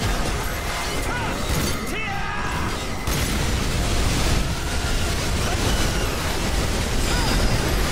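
A powerful energy beam roars steadily.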